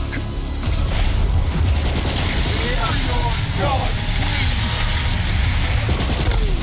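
A huge monster growls and roars.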